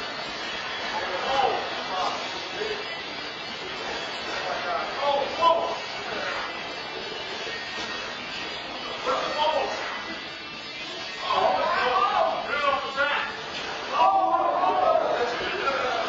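Several men shout and laugh close by.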